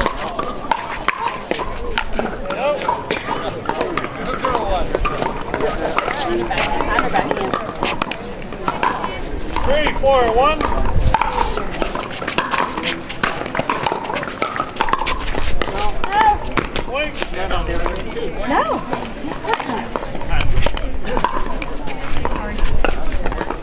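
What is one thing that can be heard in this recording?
Paddles hit a plastic ball with sharp pops.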